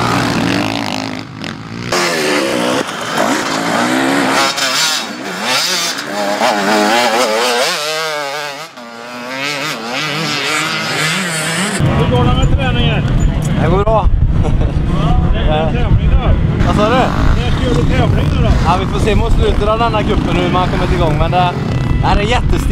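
Motorbike engines rev and whine loudly.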